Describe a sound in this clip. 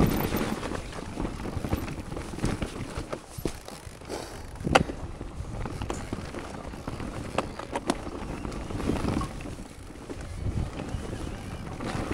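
Bicycle tyres rumble and crunch over rock and dirt.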